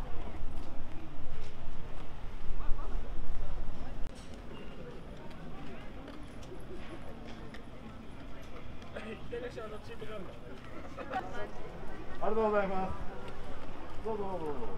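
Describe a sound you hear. A crowd of people chats in the open air.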